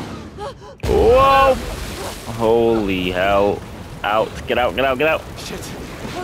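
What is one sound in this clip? A young woman and a young man scream in panic.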